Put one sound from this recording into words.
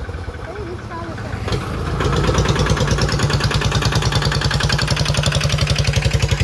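A motorized cart's engine chugs loudly nearby.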